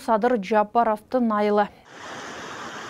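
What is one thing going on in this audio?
A young woman reads out calmly into a microphone.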